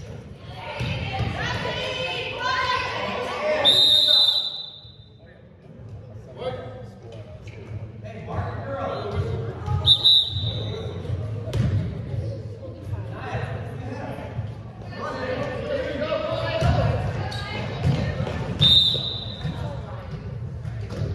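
Young girls shout and call out across a large echoing hall.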